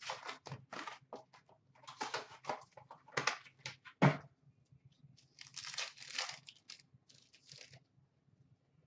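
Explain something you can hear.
A foil wrapper of a trading card pack crinkles and tears in hands.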